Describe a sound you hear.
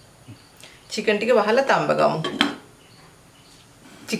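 A glass lid clinks onto a metal pot.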